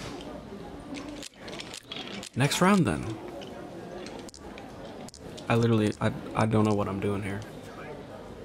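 Mahjong tiles click and clack as they are dealt and discarded.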